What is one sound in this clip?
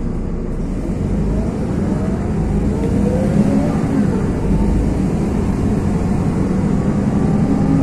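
Cars drive past on a wet road, tyres swishing.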